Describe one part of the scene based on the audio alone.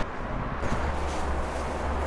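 Leaves and twigs rustle as a man scrambles through undergrowth.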